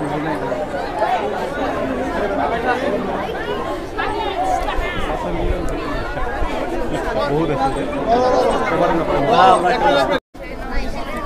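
A crowd of children chants and shouts together outdoors.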